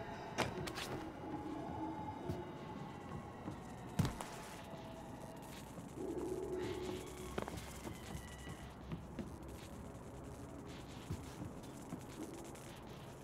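Footsteps thud on wooden boards and metal stairs.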